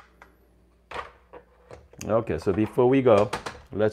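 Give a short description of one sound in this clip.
A metal filter holder clanks and locks into place.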